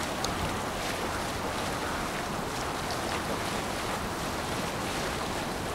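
Water rushes and splashes steadily past a moving boat's hull.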